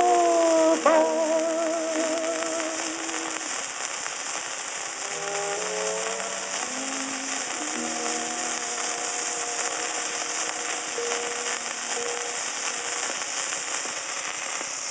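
A needle hisses and crackles steadily on a record's surface.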